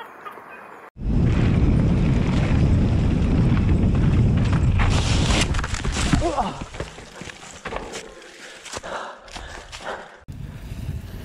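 Bicycle tyres rumble over a dirt trail.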